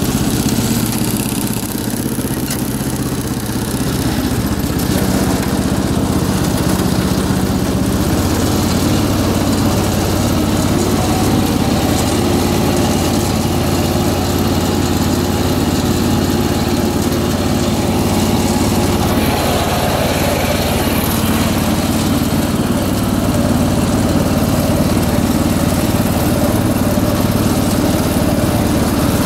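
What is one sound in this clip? A lawn tractor engine runs steadily with a low rumble.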